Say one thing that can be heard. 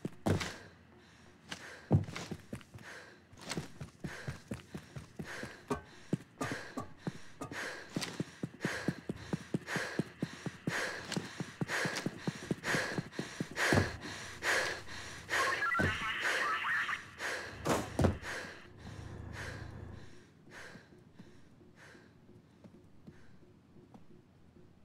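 Footsteps thud quickly and steadily on hard ground.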